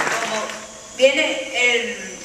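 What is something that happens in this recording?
An elderly woman speaks through a microphone and loudspeaker.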